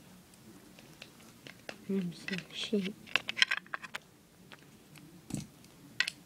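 A small plastic toy is handled with soft taps and clicks.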